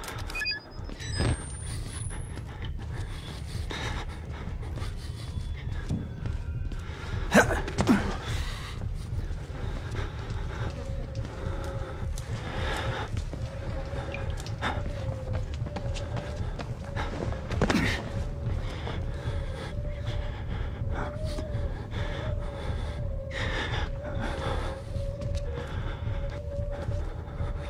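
Footsteps creak slowly across a wooden floor.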